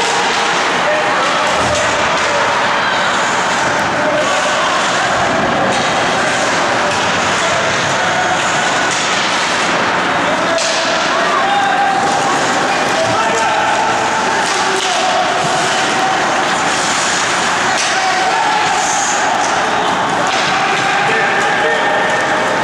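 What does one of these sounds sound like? Ice skates scrape and carve across an ice rink.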